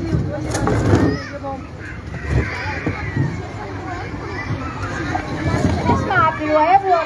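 A crowd of children and adults chatter nearby outdoors.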